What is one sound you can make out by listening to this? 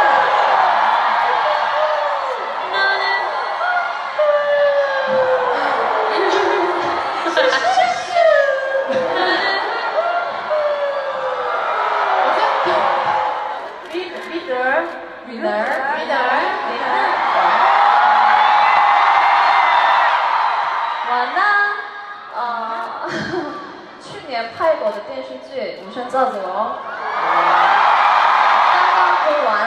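Young women talk and laugh with animation through microphones in a large echoing hall.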